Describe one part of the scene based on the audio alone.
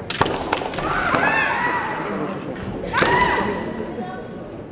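Kendo fencers shout loud, drawn-out battle cries.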